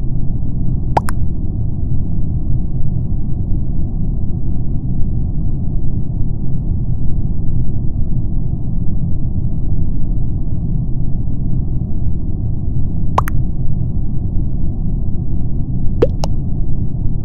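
Short electronic pops sound as chat messages arrive.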